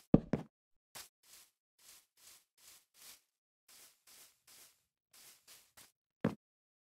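Footsteps rustle softly on grass.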